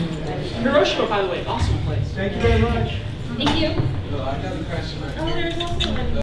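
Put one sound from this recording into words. A woman speaks into a microphone through a loudspeaker.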